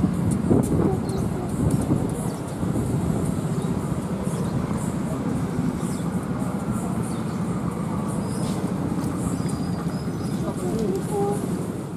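A diesel locomotive engine idles with a steady low rumble close by.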